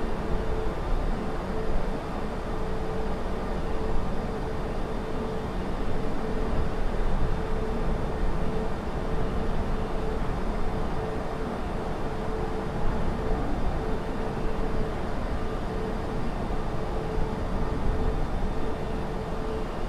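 Jet engines roar steadily with a low rumble.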